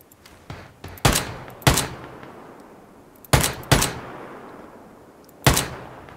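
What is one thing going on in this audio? A rifle fires single loud shots, one after another.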